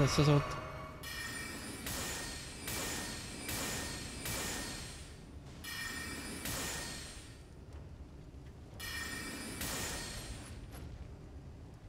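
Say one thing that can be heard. Swords clash and swish in a game fight.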